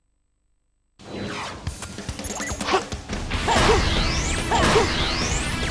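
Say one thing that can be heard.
Game music and sound effects play loudly.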